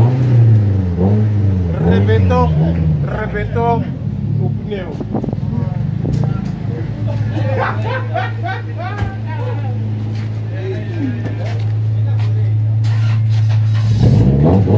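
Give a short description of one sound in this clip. A car engine revs loudly and rumbles steadily.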